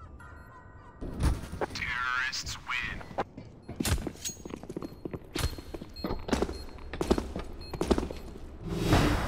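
A knife slashes and stabs with sharp swishes.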